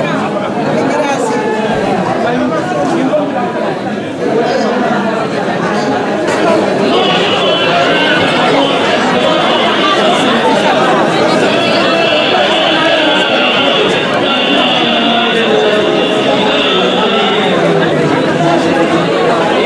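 A crowd of women chatters loudly.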